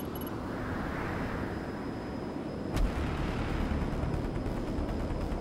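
Heavy aircraft engines rumble and roar steadily.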